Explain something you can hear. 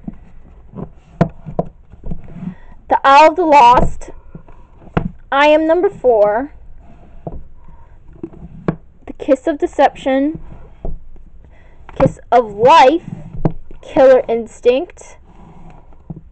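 Fingers tap and brush against book spines.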